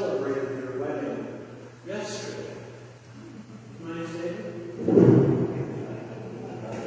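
A person sings at a distance in an echoing room.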